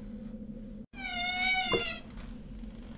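A metal stove door clangs shut.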